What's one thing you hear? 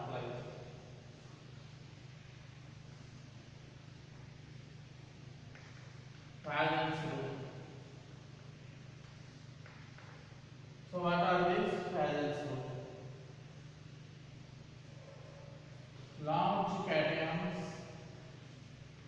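A man speaks in short bursts in an echoing room.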